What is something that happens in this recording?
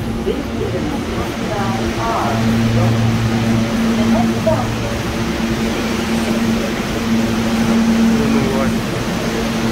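A crowd murmurs in an echoing space.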